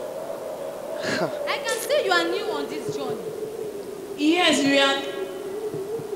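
A young woman speaks with animation through a microphone and loudspeakers in an echoing hall.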